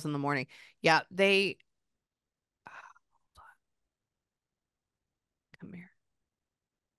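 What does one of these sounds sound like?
A woman speaks softly and close into a microphone.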